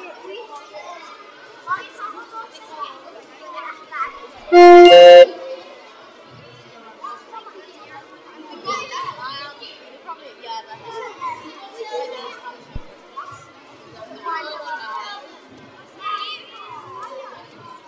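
Children murmur and whisper quietly in a large echoing hall.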